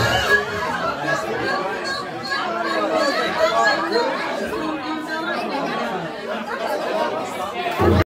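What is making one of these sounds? A crowd of people chatter loudly nearby in a busy room.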